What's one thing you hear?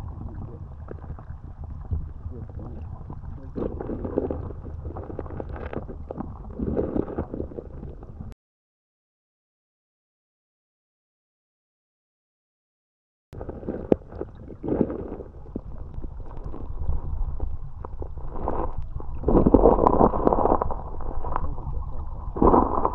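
Flowing water rushes and gurgles, heard muffled from underwater.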